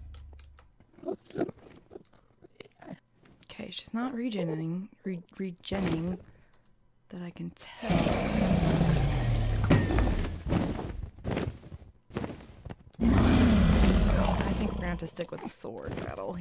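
A video-game dragon growls with a deep falling roar.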